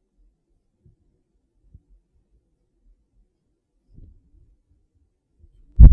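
A marker squeaks softly on paper.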